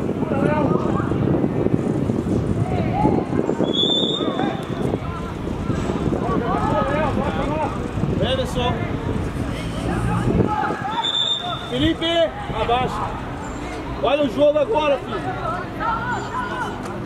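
Young players shout to each other outdoors.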